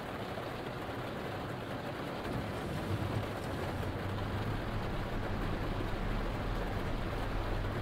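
Windscreen wipers sweep back and forth.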